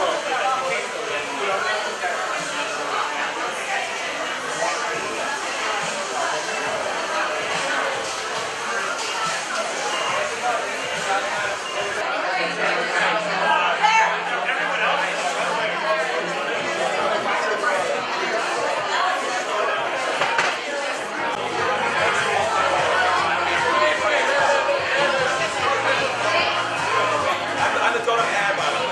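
A crowd of people chatters loudly around the listener.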